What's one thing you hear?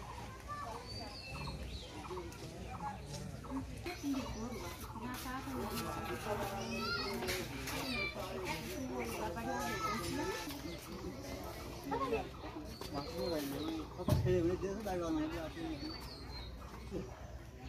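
Several women talk with animation nearby, outdoors.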